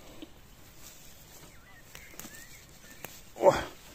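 Dry grass rustles as a hand parts it.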